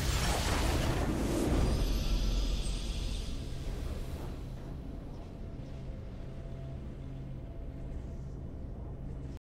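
A triumphant musical fanfare plays and slowly fades.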